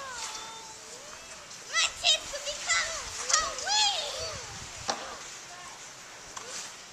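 Young children shout and squeal excitedly outdoors.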